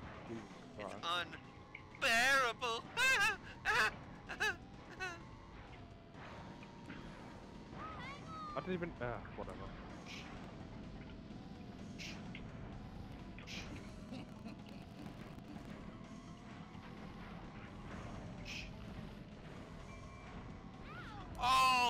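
Cartoon characters shout and cry out in short bursts.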